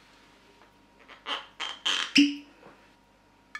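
A cork pops out of a bottle.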